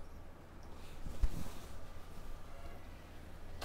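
Fabric rustles as a woman handles a sari.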